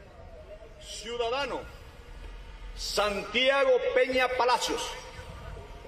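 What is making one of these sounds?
A man reads out through a microphone.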